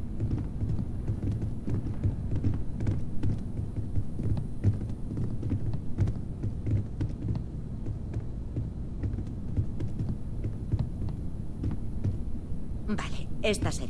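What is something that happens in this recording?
Footsteps walk steadily across a wooden floor.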